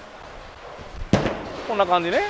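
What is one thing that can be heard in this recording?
A bowling ball thuds onto the lane.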